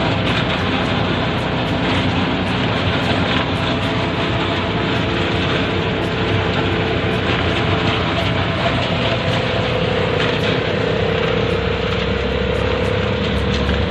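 A small motorcycle engine drones steadily while driving.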